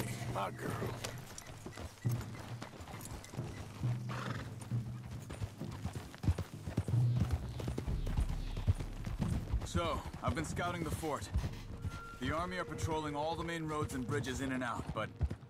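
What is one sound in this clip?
Horses' hooves clop on a dirt path.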